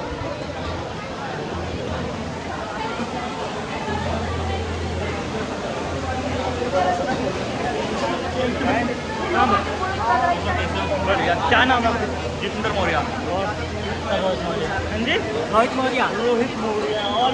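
A crowd chatters all around, loud and busy.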